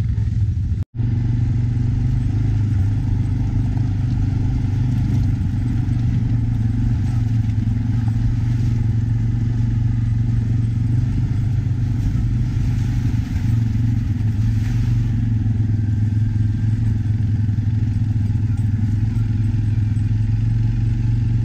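Tyres roll and crunch over a gravel track.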